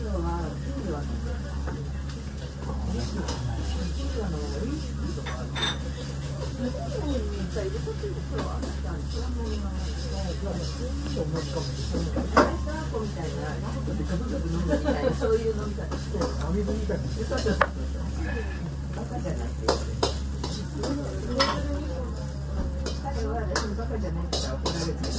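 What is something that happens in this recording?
A wooden spoon scrapes and taps against a plate.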